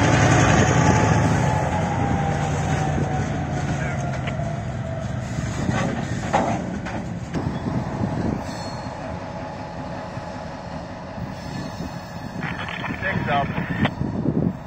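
Train wheels clatter and clack over rail joints.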